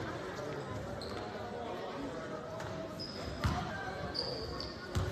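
Sneakers squeak sharply on the court.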